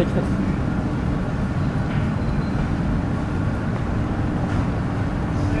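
A pedestrian's footsteps tap faintly on a paved street.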